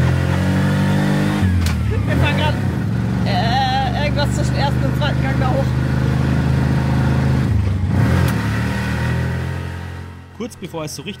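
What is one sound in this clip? A small motor engine drones steadily up close, then goes quiet.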